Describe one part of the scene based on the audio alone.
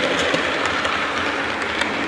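A model train rumbles along its track.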